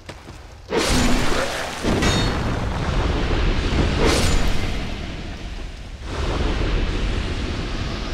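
A sword swings and slashes through the air.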